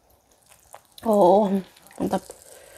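A young woman hums briefly with her mouth closed.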